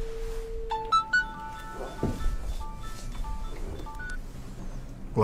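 Desk phone keys beep in quick runs.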